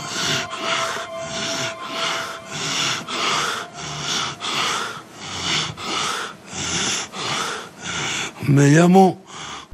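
A middle-aged man declaims loudly and dramatically.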